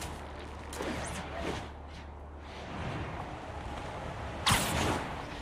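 Wind rushes past in a long fall.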